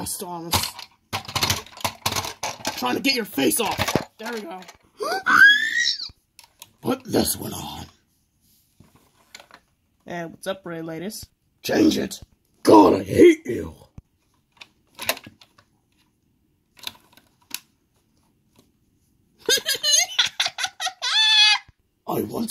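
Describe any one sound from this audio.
Plastic toy trains knock and clatter as they are handled.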